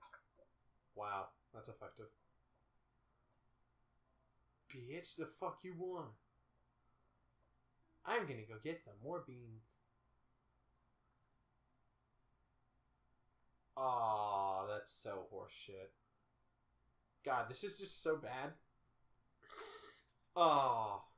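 A young man speaks close to a microphone in short, animated bursts with pauses.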